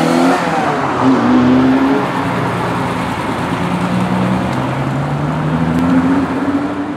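A second sports car engine revs and rumbles as the car pulls past.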